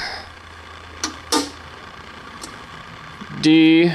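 A hand clicks a switch on a machine.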